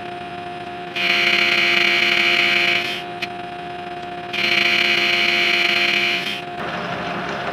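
A cutting tool screeches loudly against spinning metal in long bursts.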